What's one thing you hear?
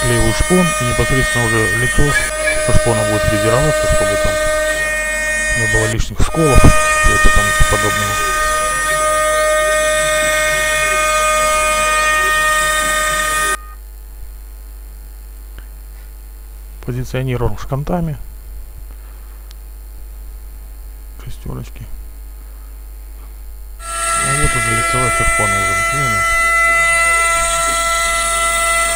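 A router spindle whines steadily as it cuts into wood.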